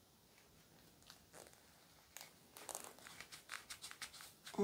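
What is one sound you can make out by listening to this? Thread rustles and snaps softly as a doll's limb is strung by hand.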